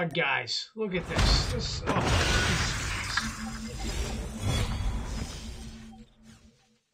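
A game chest bursts open with a whooshing crash.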